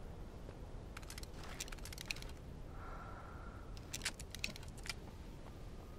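A weapon is picked up with sharp clicks.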